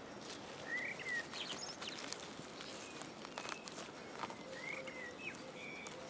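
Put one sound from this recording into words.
Dry pine needles rustle and crackle as a mushroom is twisted out of the ground.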